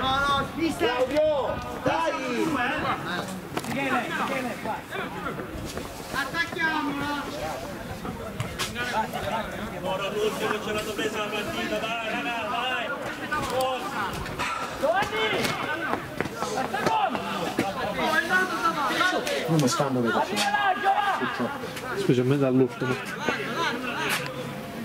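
A man shouts instructions loudly outdoors.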